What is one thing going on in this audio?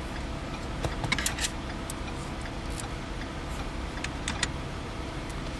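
A tool clicks and scrapes against plastic trim.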